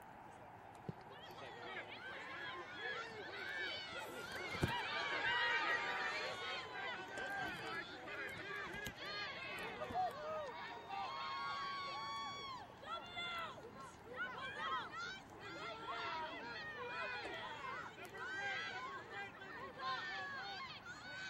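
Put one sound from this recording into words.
Young women shout and call out across an open field at a distance.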